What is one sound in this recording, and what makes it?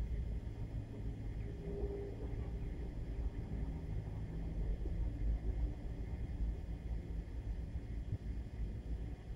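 Wind rumbles across an open outdoor space.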